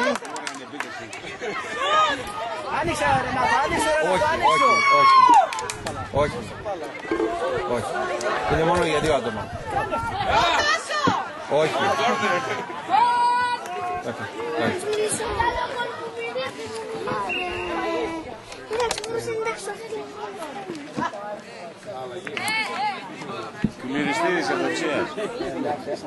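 Boys shout to each other outdoors.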